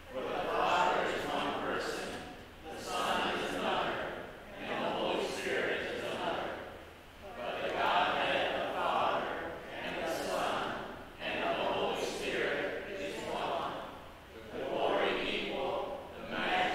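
A man reads aloud through a microphone in a large echoing hall.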